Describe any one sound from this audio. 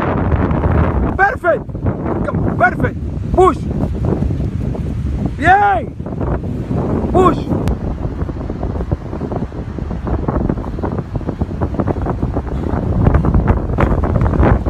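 A parachute flaps and rustles in the wind.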